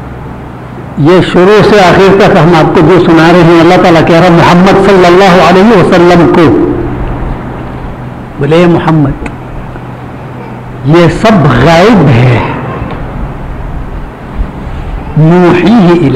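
An elderly man recites in a melodic chanting voice close to a microphone.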